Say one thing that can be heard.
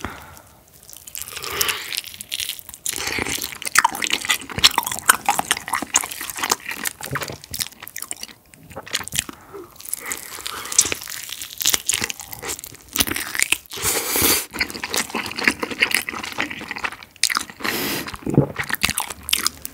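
Crispy fried chicken crunches loudly as a young man bites and chews close to a microphone.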